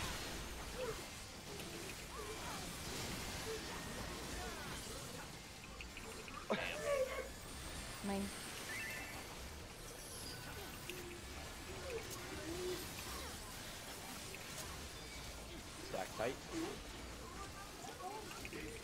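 Magical game effects whoosh and chime.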